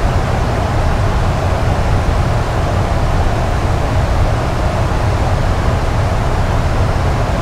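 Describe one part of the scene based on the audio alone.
Jet engines and rushing air roar steadily.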